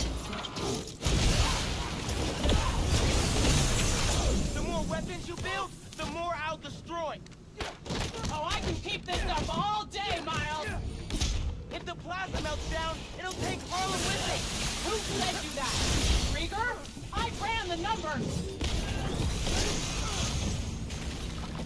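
Video game blasts and impacts boom loudly.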